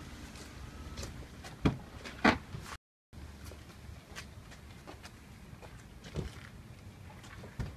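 Bodies bump and clothing rustles in a close scuffle.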